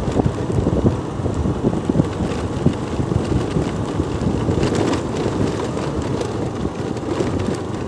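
Tyres roll and crunch over a dirt road.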